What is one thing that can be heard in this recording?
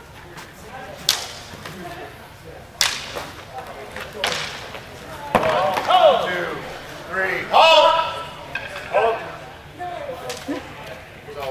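Nylon longswords clash and clack in a large echoing hall.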